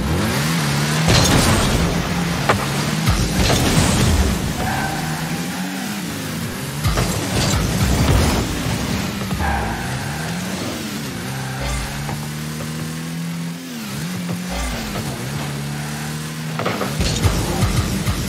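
A rocket booster roars in loud rushing bursts.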